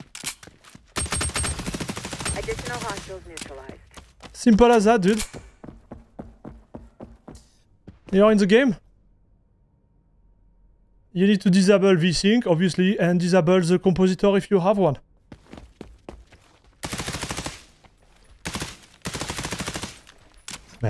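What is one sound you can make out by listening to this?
Gunfire rattles in rapid bursts from a game.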